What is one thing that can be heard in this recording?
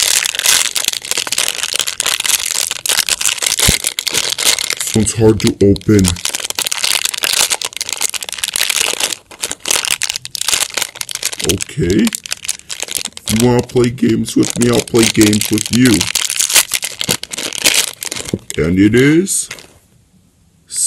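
Foil wrapping crinkles and rustles close by.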